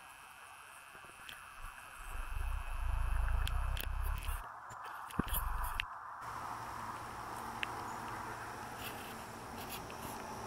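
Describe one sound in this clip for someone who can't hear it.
A snake slithers through dry grass with a faint rustle.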